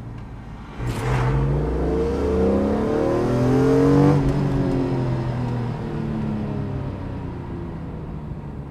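A car engine roars as it accelerates hard, rising in pitch through the gears.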